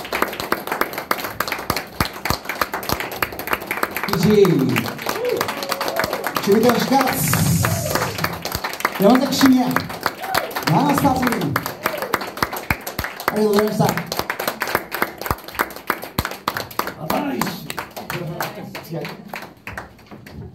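A band plays guitars and bass.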